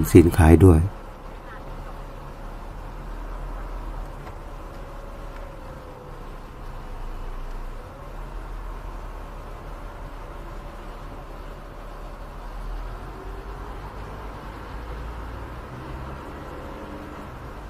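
A car engine hums steadily inside a slowly turning car.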